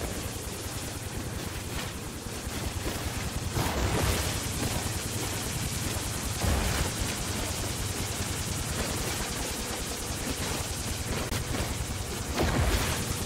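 A video game mining laser hums and crackles as it cuts into rock.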